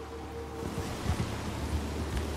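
A horse crashes heavily to the ground.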